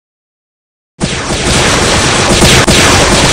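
Electronic game sound effects burst with a loud whoosh and crackle.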